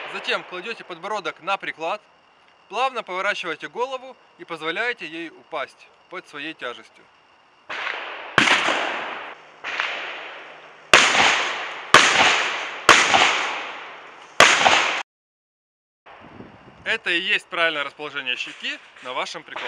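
A young man speaks calmly and clearly, close by.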